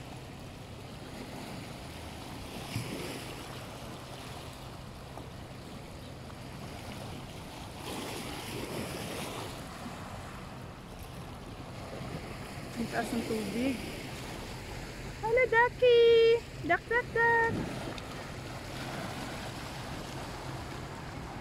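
Small waves lap against stones at the water's edge.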